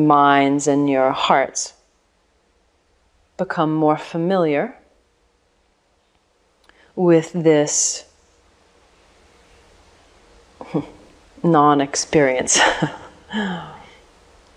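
A middle-aged woman speaks calmly and slowly, close by, with pauses.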